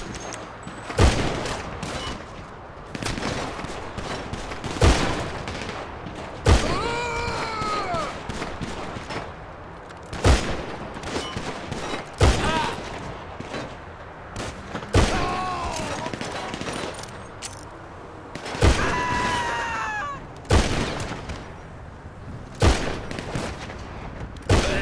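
Gunshots ring out one at a time, with a sharp echo after each.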